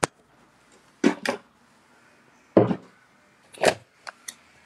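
A young man speaks in short bursts close to a phone microphone.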